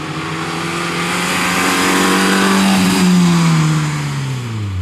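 Tyres screech on asphalt as a car slides through a turn.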